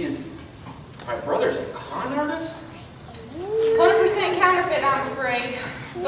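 A young woman speaks with animation on a stage.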